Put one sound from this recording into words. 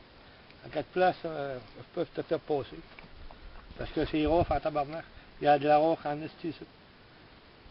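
A middle-aged man speaks in short bursts into a handheld radio, close by, outdoors.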